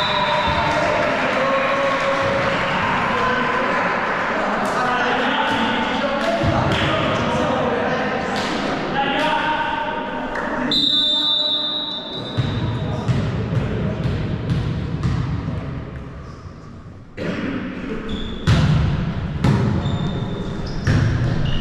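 Players' voices call out, echoing in a large hall.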